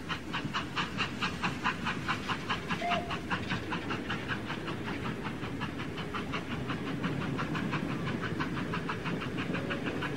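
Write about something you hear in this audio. Small children's feet shuffle and stamp on a wooden stage.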